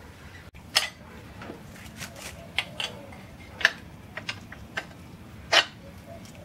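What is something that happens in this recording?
Metal parts clank and knock.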